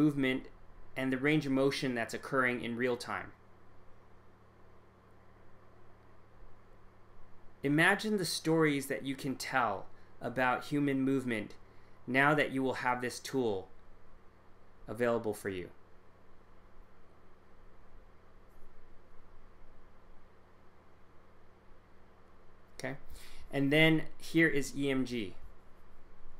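A man speaks calmly through a microphone on an online call, in short phrases with pauses.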